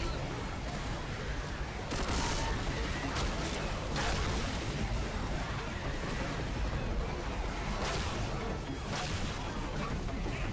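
A low rumbling roar of noise fills the space.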